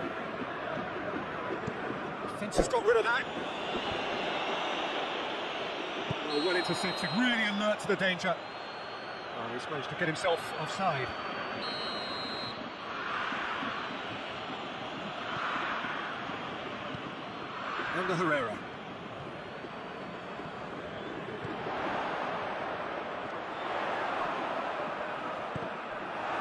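A large stadium crowd roars and murmurs steadily, swelling now and then.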